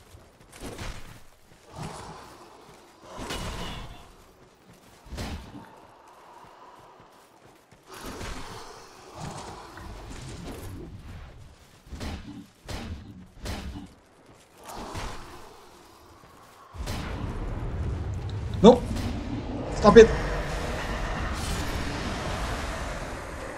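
Heavy blades swoosh and clang in a fight.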